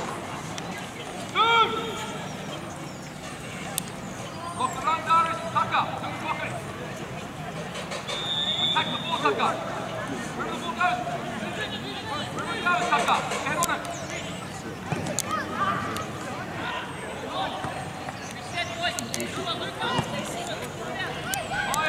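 Young players shout to each other outdoors across an open field.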